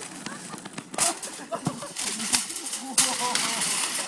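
A shopping trolley crashes and tips over.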